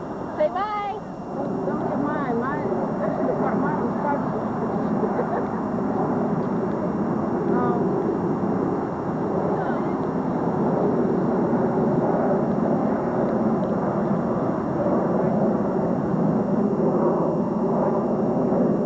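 Several adults talk and chatter close by, outdoors.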